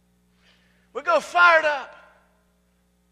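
A middle-aged man shouts loudly through a microphone.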